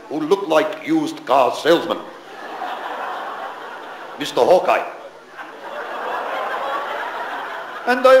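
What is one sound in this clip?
An elderly man speaks with animation into a microphone in a large hall.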